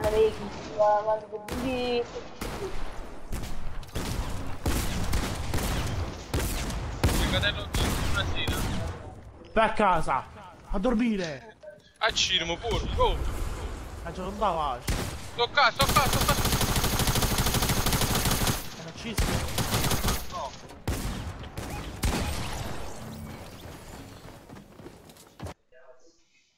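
Rapid thuds and bangs of a video game battle sound in quick bursts.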